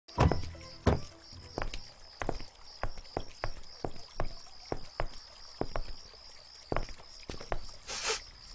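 Footsteps crunch on gravel outdoors.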